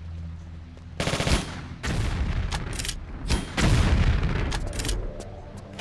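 A fiery blast roars.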